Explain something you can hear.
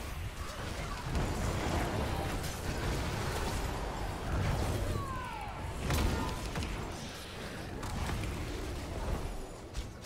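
Game battle effects clash, blast and whoosh in quick bursts.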